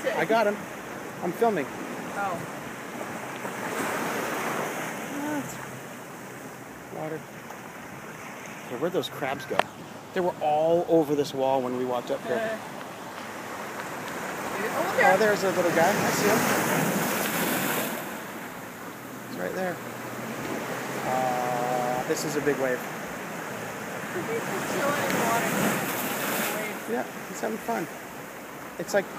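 Waves wash and splash against rocks in surges.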